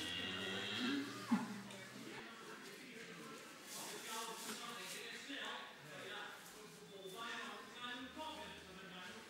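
Sheep bleat nearby.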